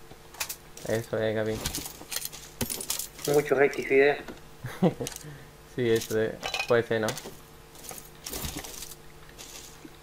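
Gear rustles and clicks as items are picked up.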